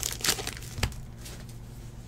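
Trading cards rustle and slap as a stack is shuffled.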